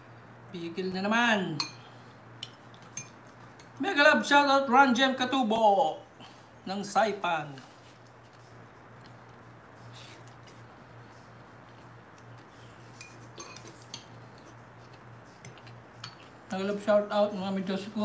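A fork and spoon clink against a glass bowl.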